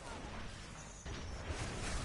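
A rifle fires a crackling energy blast.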